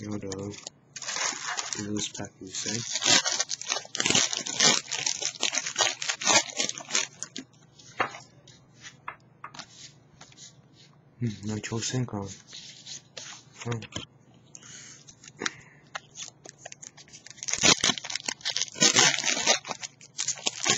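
A foil wrapper crinkles and rustles as hands handle it.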